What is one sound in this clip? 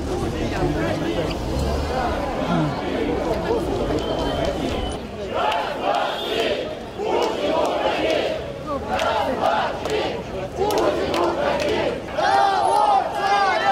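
Many people talk in a crowd.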